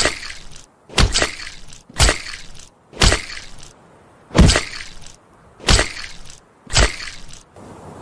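Small objects pop loose in quick, sharp bursts.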